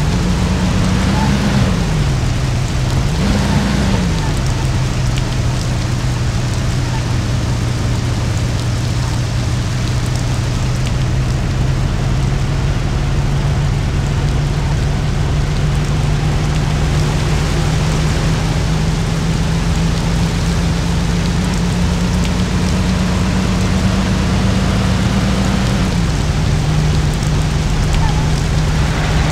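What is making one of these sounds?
An old car engine hums steadily as the car drives along.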